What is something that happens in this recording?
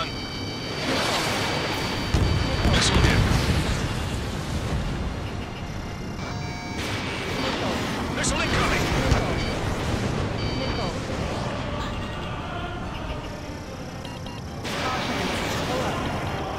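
Missiles whoosh away in quick bursts.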